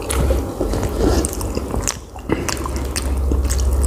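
A spoon clinks against a plate.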